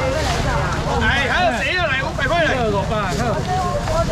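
Men call out loudly to customers.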